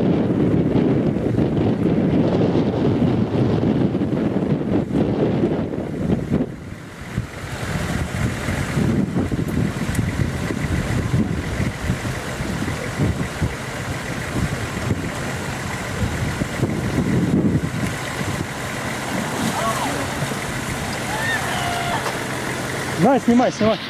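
A car engine labours steadily at low revs nearby.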